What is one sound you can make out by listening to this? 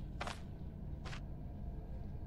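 A short game sound effect plays as an item is picked up.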